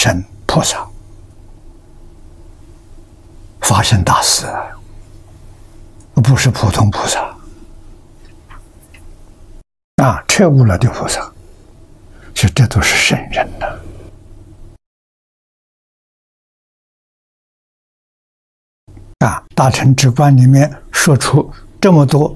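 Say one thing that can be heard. An elderly man speaks calmly and slowly into a microphone, with long pauses.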